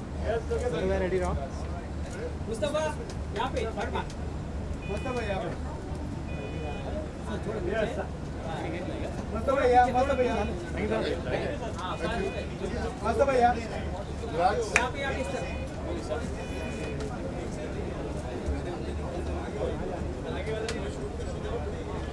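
Adult men talk and call out nearby with animation.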